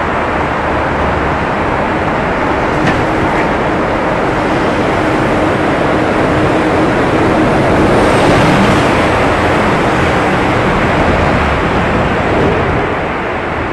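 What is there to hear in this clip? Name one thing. Passing traffic rumbles by in a tunnel, swelling and fading.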